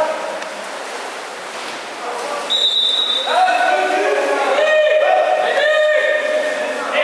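Water splashes as swimmers thrash in an echoing indoor pool.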